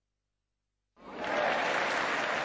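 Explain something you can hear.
A large crowd applauds loudly.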